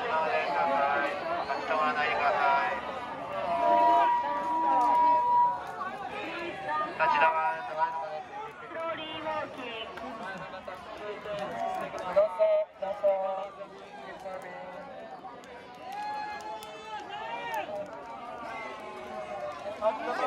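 A crowd of men and women chant and shout loudly outdoors.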